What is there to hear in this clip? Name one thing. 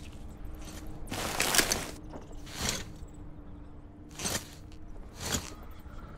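A paper map rustles as it unfolds.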